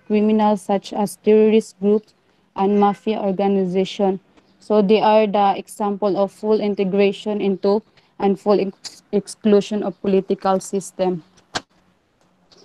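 A woman speaks steadily over an online call.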